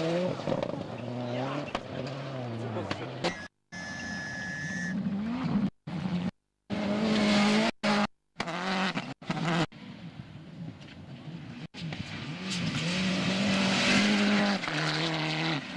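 A rally car engine roars loudly at high revs as it speeds past.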